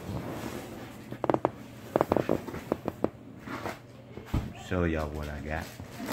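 Cardboard scrapes and taps as a box is handled.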